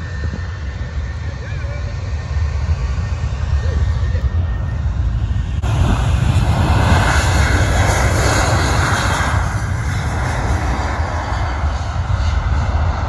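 A jet airliner roars loudly as it speeds along a runway, growing louder.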